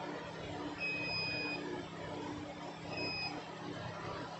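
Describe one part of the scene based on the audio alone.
A multimeter beeps sharply twice.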